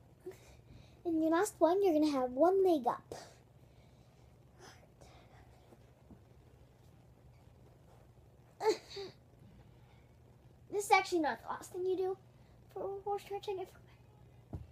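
A young girl talks close by, with animation.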